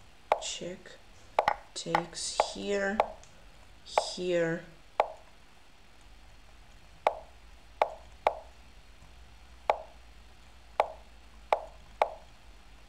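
Short wooden clicks sound as chess pieces are moved.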